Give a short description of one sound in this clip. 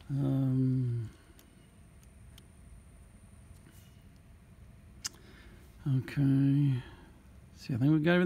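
A metal throttle linkage clicks softly as it is moved by hand.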